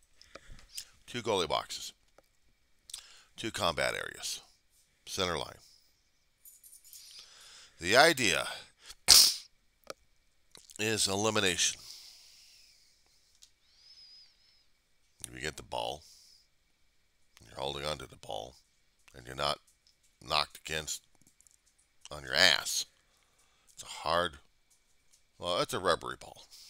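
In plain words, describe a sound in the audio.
A man talks with animation, close to a microphone, in bursts with pauses.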